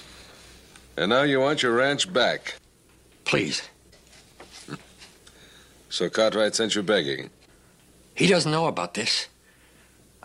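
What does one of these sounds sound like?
A man speaks calmly and deliberately, close by.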